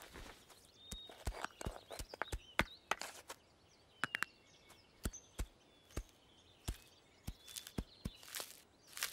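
Hooves tap together in quick, sharp knocks.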